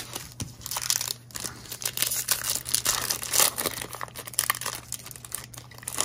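A foil pack tears open with a crackling rip.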